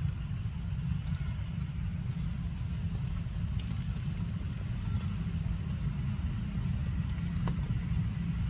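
A small monkey crinkles a plastic wrapper.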